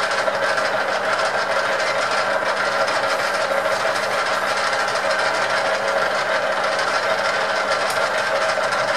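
A drill bit grinds and squeals into spinning metal.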